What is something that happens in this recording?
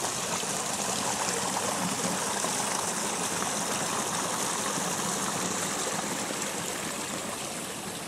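A small stream trickles and splashes over rocks nearby.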